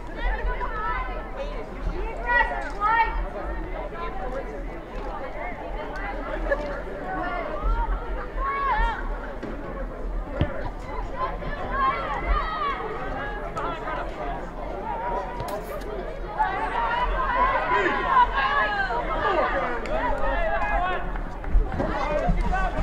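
A crowd of spectators cheers and shouts from the stands outdoors.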